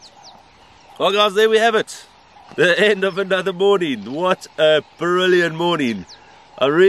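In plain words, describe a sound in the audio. A middle-aged man talks calmly outdoors, close by.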